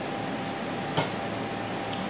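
A hand taps a plate with a sharp click.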